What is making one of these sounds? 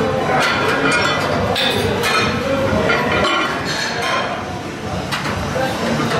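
Metal weight plates clank against a bar.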